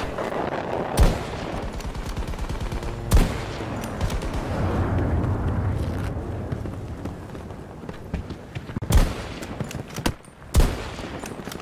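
A sniper rifle fires with sharp cracks.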